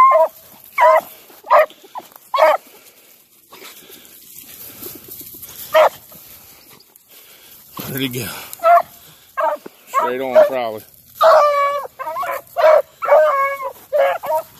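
Dogs rustle through dry grass and brush.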